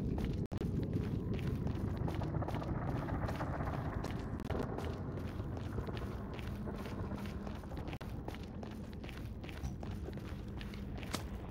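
Footsteps crunch steadily on stone.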